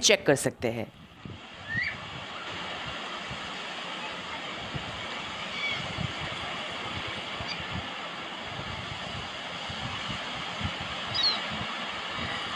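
Wind-like game sounds play steadily from a phone speaker.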